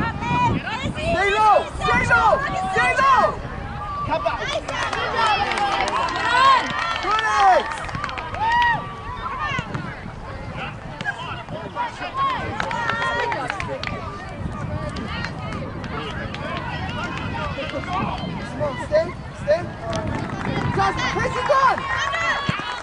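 Young women shout calls to each other across an open outdoor field.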